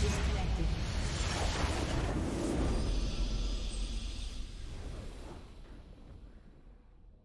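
A triumphant game fanfare swells and then fades out.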